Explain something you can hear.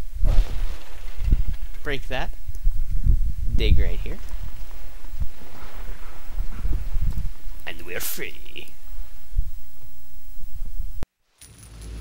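A dog digs and scrapes at loose earth.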